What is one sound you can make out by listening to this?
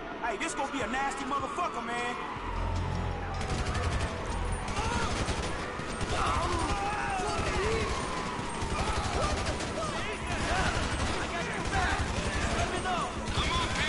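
Police sirens wail and warble nearby.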